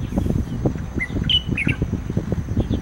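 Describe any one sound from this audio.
A black bulbul calls with short, harsh notes.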